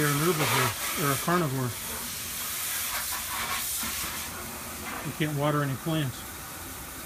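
Water pours from a watering can and splashes onto stone.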